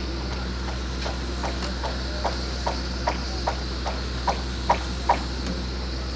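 Workers knock on wooden formwork in a quick series of sharp taps.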